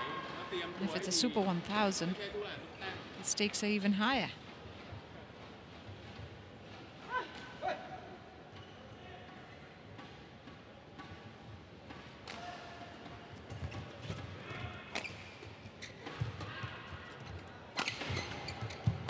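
Badminton rackets smack a shuttlecock back and forth.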